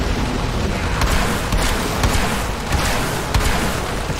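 Weapon blasts crack sharply now and then.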